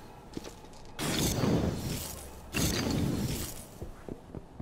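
A dense crackling rush of sparks roars and fades.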